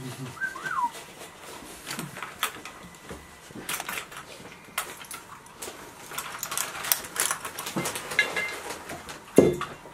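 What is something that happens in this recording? Buckles and straps click and rustle.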